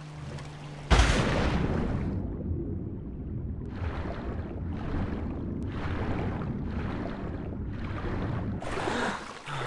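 Water churns and rumbles, heard muffled from below the surface.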